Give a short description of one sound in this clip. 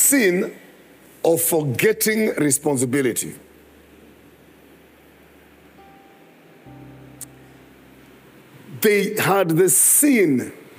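A man preaches with animation through a microphone, pausing between phrases.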